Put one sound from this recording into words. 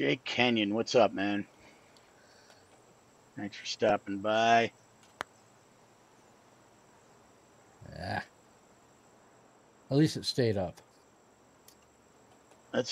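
A middle-aged man talks casually into a close microphone, in short bursts.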